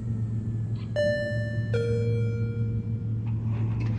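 An elevator chime rings two descending notes.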